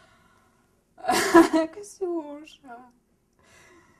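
A young woman laughs out loud.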